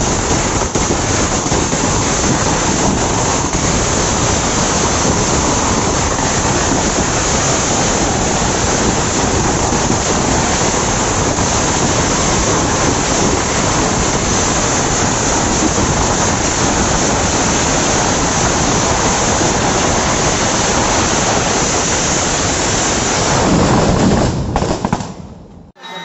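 A string of ground firecrackers crackles and bangs in rapid bursts.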